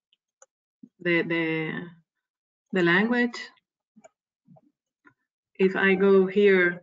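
A woman speaks calmly through an online call microphone, in short phrases with pauses.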